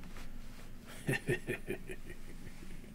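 A man laughs into a microphone over an online call.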